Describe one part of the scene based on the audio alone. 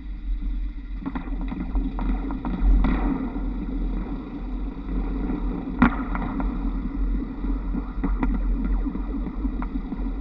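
Trolley poles clatter and click against overhead wires.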